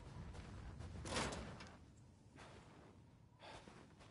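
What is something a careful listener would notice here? A metal gate clanks and creaks open.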